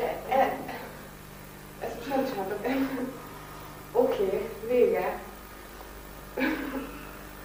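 A woman speaks in short bursts.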